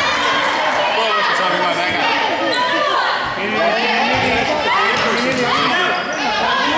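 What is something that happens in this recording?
Sneakers squeak sharply and often on a hard court.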